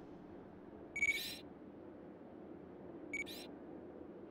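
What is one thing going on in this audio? Short soft beeps sound.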